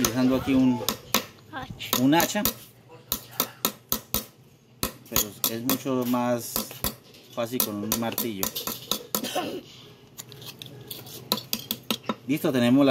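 A hammer taps sharply on metal against a wooden block.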